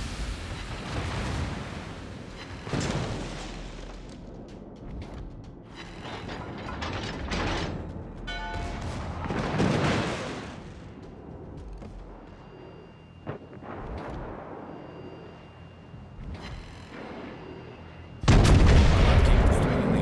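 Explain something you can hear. Shells splash into the sea with heavy thuds.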